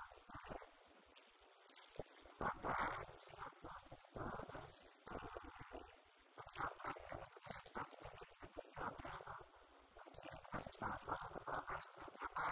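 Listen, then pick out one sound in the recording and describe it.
A woman speaks calmly into a microphone, heard through a loudspeaker in an echoing room.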